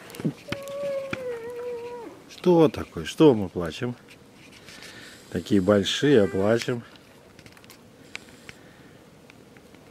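A young moose munches food from a bucket.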